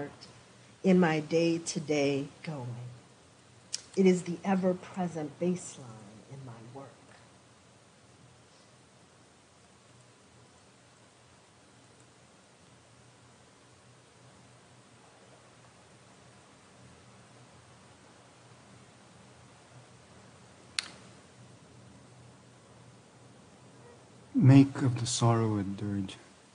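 A woman reads aloud calmly into a microphone.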